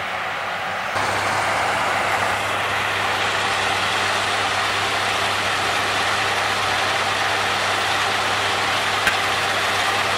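A tractor engine rumbles nearby.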